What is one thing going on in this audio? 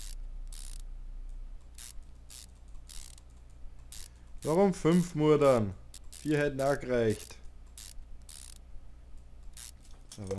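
A ratchet wrench clicks as bolts are loosened.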